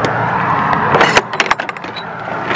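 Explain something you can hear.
A metal latch clanks open.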